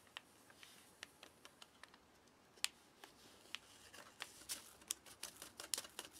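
Sugar trickles softly into a paper pouch of dry oats.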